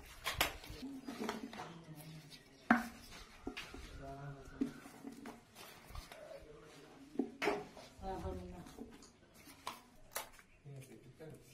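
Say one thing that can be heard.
Cardboard tubes knock and clatter together as they are handled.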